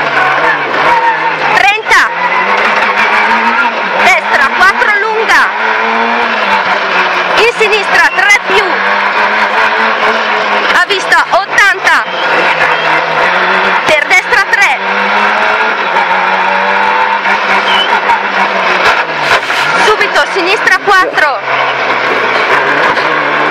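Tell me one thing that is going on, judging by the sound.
A rally car engine roars and revs hard.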